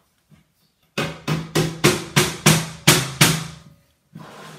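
A hammer strikes wood in quick, loud blows.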